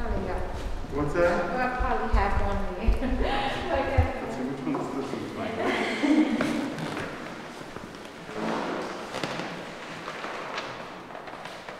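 A man speaks quietly in an echoing hall.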